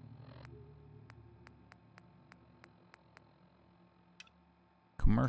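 Short clicks tick quickly as a menu list is scrolled.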